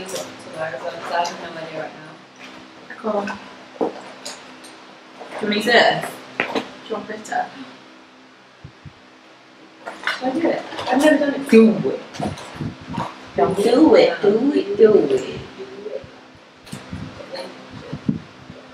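A second young woman talks and laughs close by.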